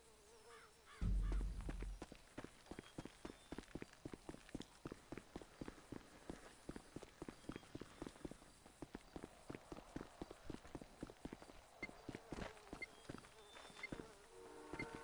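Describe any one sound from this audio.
Quick footsteps run over dirt and gravel.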